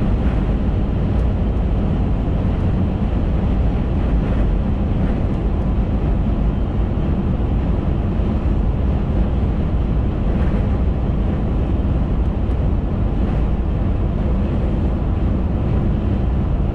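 A car engine hums steadily while driving at speed.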